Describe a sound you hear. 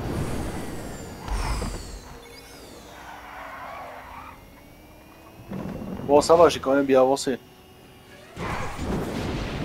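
A car engine roars and whines as it accelerates.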